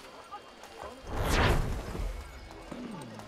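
A bright whooshing chime swells and fades.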